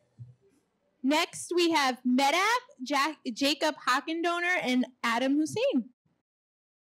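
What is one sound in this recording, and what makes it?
A woman speaks into a microphone, heard over loudspeakers in a large room.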